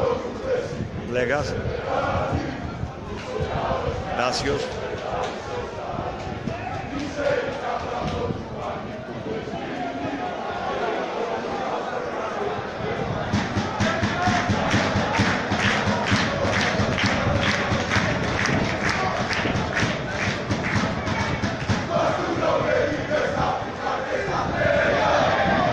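A stadium crowd murmurs and shouts outdoors.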